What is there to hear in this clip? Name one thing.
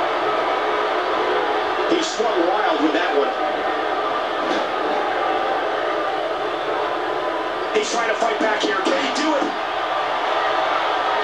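A crowd cheers and roars steadily through a television speaker.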